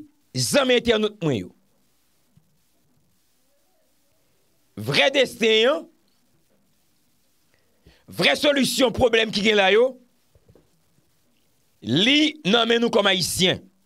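A man speaks with animation in bursts, close to a microphone.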